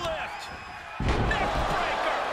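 A body slams hard onto a wrestling ring mat with a heavy thud.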